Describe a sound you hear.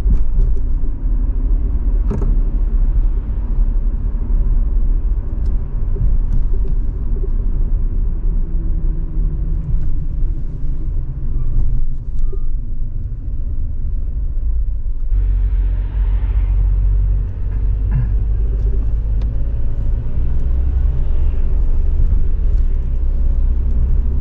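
A car engine hums steadily from inside while driving along a road.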